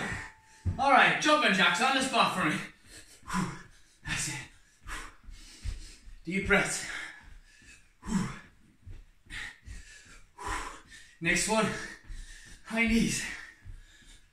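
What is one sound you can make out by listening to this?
A man speaks with animation close by, between breaths.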